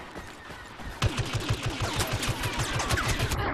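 Laser rifles fire rapid bursts of shots.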